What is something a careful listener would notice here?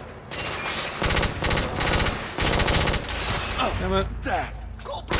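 A rifle fires rapid shots, loud and close.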